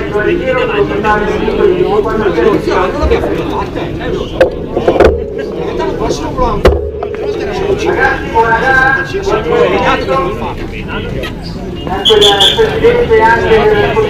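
Many men chat and call out nearby outdoors.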